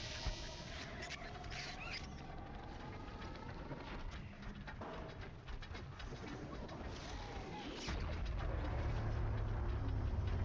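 A large machine creature whirs and clanks nearby.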